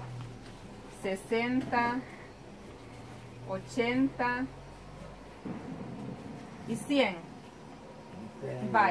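A woman speaks nearby in short, high phrases.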